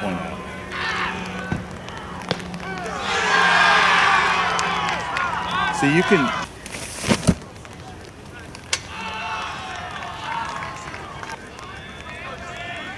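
Young men shout and cheer from a distance outdoors.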